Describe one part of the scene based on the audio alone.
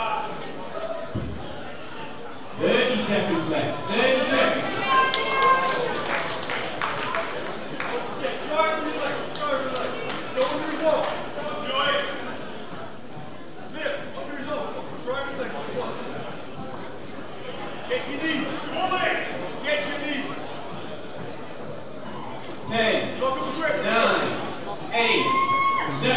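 Spectators shout and call out loudly in a large echoing hall.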